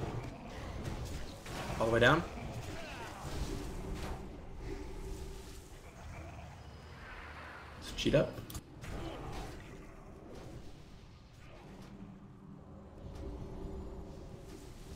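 Magic blasts and clashing weapons crackle and boom in a fantasy battle.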